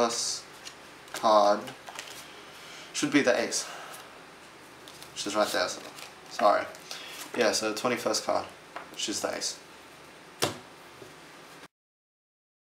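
Playing cards slap softly onto a table as they are dealt.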